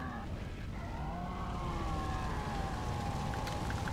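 A large beast growls deeply.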